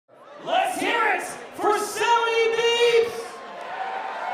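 A man shouts with excitement into a microphone, heard through loudspeakers in a large hall.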